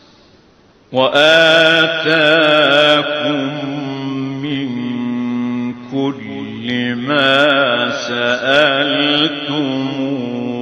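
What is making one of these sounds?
A man chants in a long, wavering, melodic voice through microphones and loudspeakers.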